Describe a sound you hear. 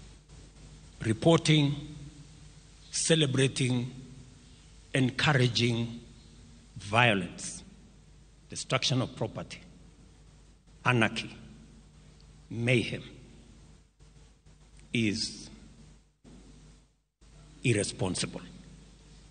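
A man speaks through a microphone in short, measured phrases with pauses between them.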